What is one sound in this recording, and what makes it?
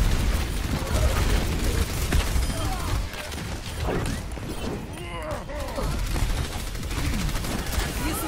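Rapid gunfire and blasts from a video game play loudly.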